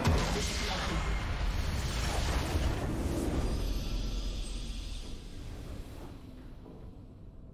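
A loud explosion booms and rumbles, then slowly fades.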